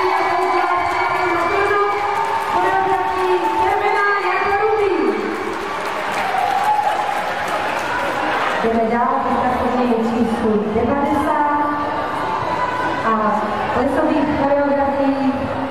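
Upbeat music with singing plays loudly over loudspeakers in a large echoing hall.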